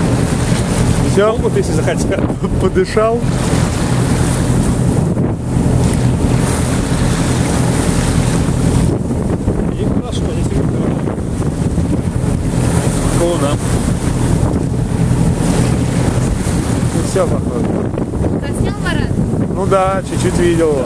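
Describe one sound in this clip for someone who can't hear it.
Choppy waves slosh and lap nearby.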